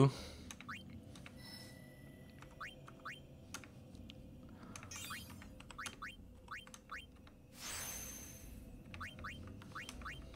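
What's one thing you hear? Short electronic menu blips chirp now and then.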